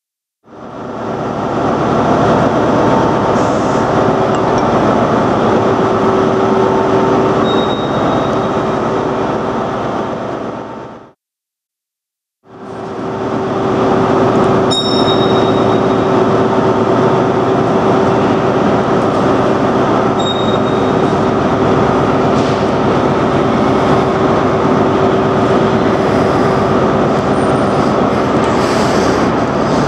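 A train engine idles with a loud, steady hum in a large echoing hall.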